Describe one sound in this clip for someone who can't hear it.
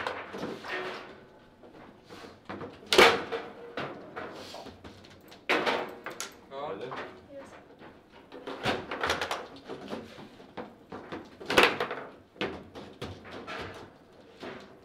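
A ball clacks sharply against plastic players and the walls of a foosball table.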